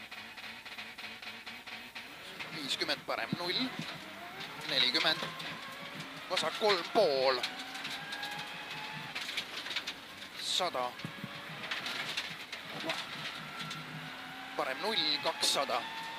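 A rally car engine revs hard and changes pitch as it shifts gears.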